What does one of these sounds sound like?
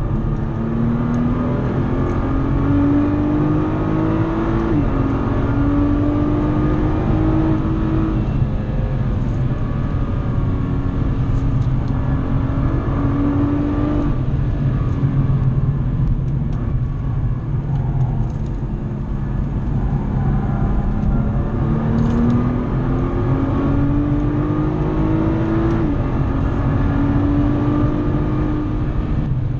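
A car engine roars loudly, revving up through the gears and dropping at each shift.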